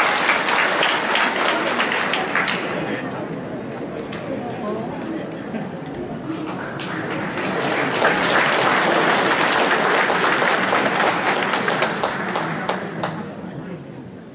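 An audience applauds in a large echoing hall, swelling and then fading away.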